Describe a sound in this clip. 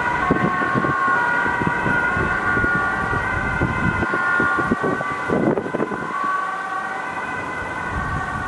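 An ambulance siren wails loudly nearby.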